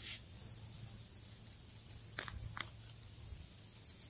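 Hands scrape and crumble loose soil.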